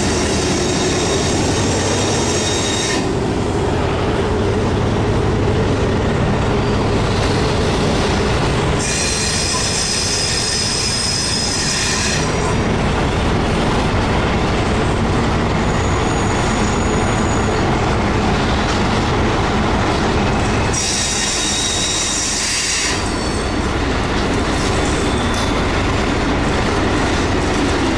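A container freight train rolls past slowly on steel rails, its wheels rumbling and clattering.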